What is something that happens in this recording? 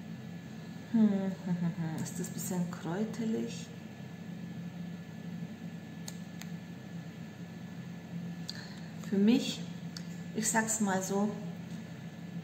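A woman speaks close by, calmly and with some animation.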